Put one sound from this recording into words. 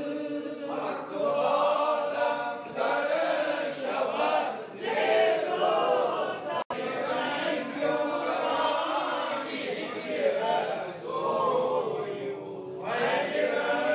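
A group of men chant together in a steady, melodic recitation.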